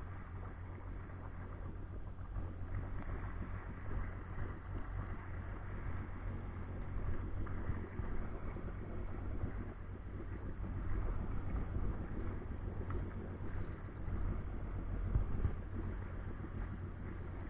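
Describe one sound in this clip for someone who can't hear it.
Water splashes and rushes against a hull.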